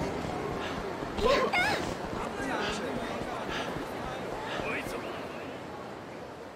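A crowd chatters in a busy street.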